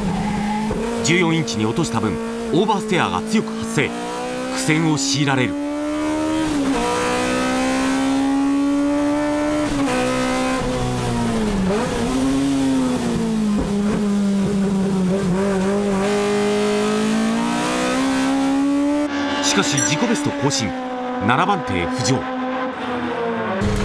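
Tyres squeal as a race car slides through corners.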